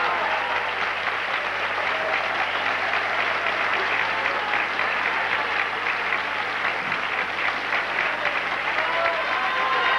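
A man claps his hands quickly and steadily.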